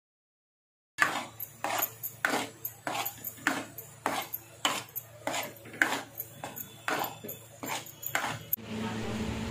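A metal spoon scrapes and clatters against a metal pan.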